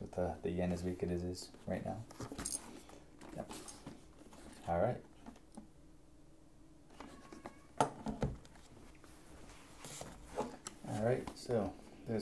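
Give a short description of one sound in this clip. Hands handle a plastic helmet, with light knocks and rubbing.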